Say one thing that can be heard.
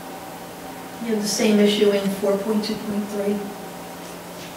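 A woman speaks briefly through a microphone.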